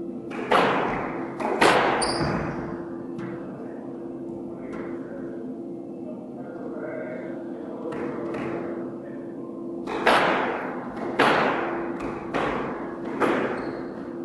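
A squash ball smacks sharply off the walls, ringing through an echoing court.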